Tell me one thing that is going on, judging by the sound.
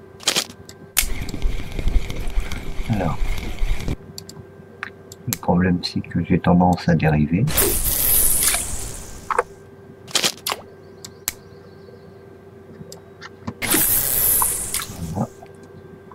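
A fishing reel whirs as its handle is wound.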